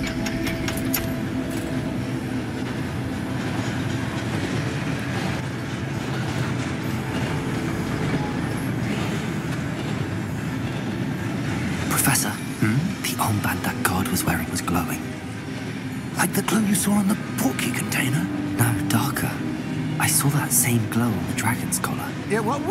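A mechanical cart rumbles and clanks along a track.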